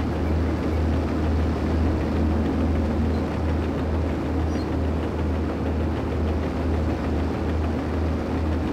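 Bulldozer tracks clank and rattle.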